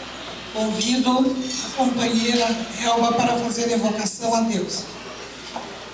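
An elderly woman speaks into a microphone over a loudspeaker.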